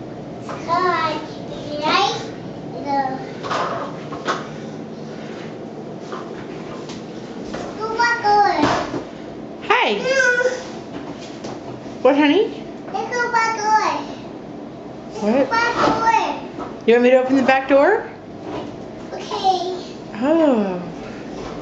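A little girl talks and babbles in a high voice close by.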